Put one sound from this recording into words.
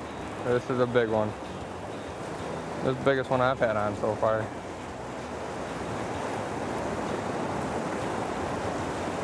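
A river rushes and churns nearby.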